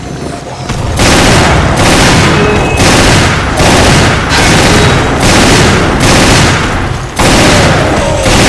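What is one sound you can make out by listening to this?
Pistol shots fire loudly in quick succession.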